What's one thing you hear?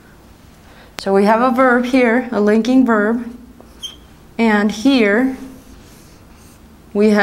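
A young woman speaks calmly and clearly close by.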